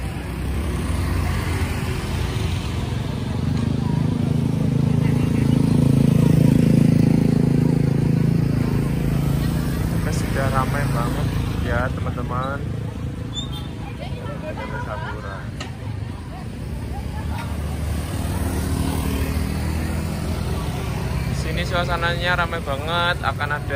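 Motorbike engines rumble nearby.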